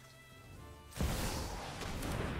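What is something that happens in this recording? A magical whoosh sounds as a spell is cast.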